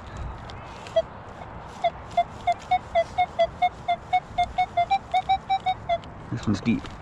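A metal detector beeps in quick, repeated tones.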